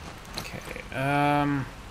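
A low humming tone swells briefly as an item is crafted.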